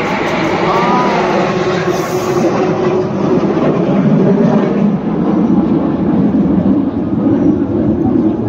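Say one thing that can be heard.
Jet planes roar overhead in a steady, rumbling drone.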